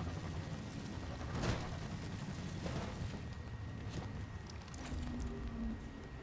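A hover vehicle's engine hums and roars.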